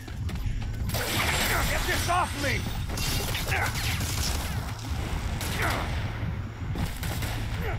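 A monster growls and roars nearby.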